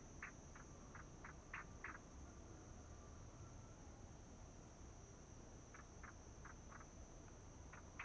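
Small birds chirp in short repeated bursts.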